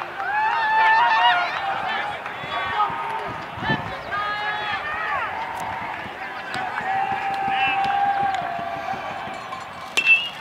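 Spectators call out from the stands.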